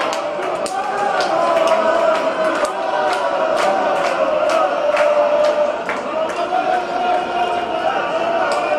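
A crowd murmurs and chatters in a large echoing arena.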